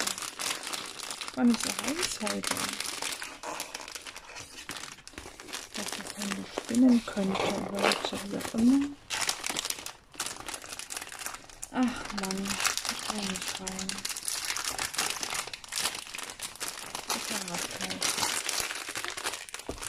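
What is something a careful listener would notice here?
Stiff plastic film crinkles and rustles close by.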